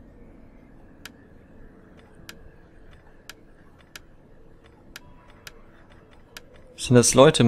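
Short, sharp clicks sound now and then as menu entries are picked.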